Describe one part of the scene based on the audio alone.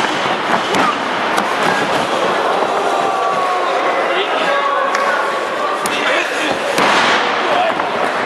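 Bodies thud onto a wrestling mat.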